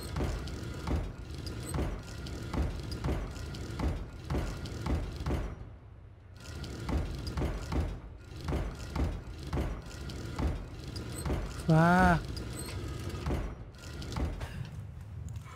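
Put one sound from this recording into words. A mechanism clicks and grinds steadily as window panels turn.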